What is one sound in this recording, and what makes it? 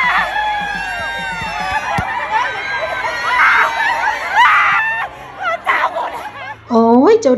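A crowd of young women chatters and squeals excitedly in a busy echoing hall.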